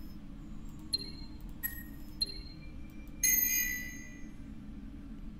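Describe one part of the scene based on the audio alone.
Short electronic chimes ring out, ending in a brighter, longer chime that fades.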